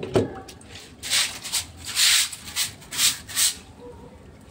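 Cloth rustles and brushes close by in short bursts.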